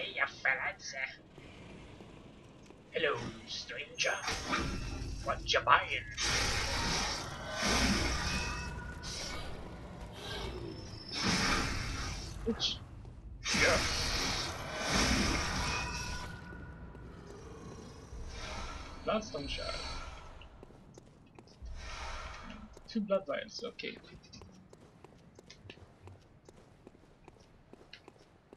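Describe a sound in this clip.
A young man talks calmly into a microphone close by.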